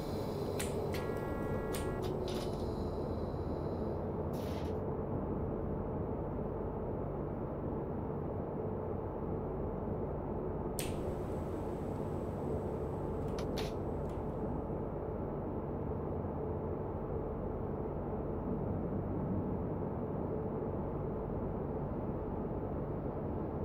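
A train engine rumbles steadily from inside the cab.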